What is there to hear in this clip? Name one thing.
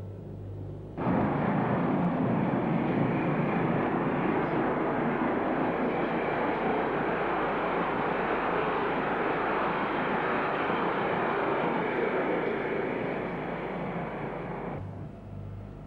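A train rumbles and clatters loudly past close by.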